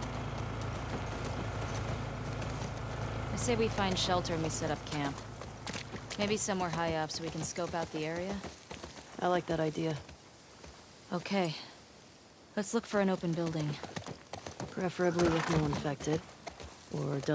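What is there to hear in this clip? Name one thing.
A horse's hooves clop slowly on the ground.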